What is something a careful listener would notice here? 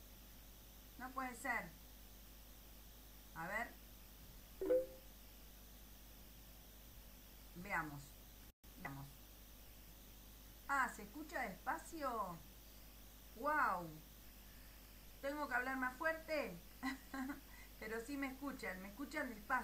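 A middle-aged woman speaks calmly into a microphone, heard as if over an online call.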